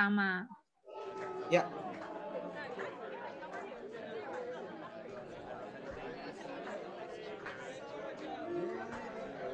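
A crowd of men and women chat outdoors, heard through an online call.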